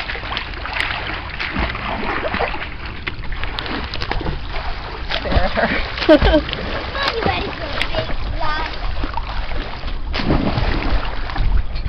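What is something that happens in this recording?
Water splashes and sloshes close by.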